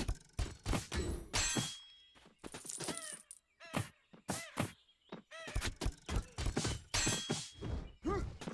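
Sharp hits and magical whooshes of a fantasy game battle sound in quick bursts.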